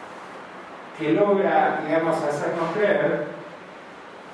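An elderly man speaks calmly into a microphone through loudspeakers in an echoing room.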